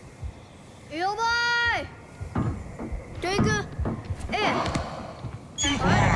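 A large creature lets out high, warbling cries.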